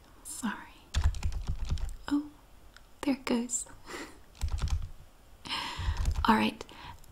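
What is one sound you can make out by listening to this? Fingers tap on a keyboard.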